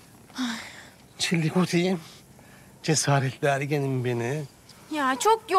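A middle-aged man speaks playfully and teasingly nearby.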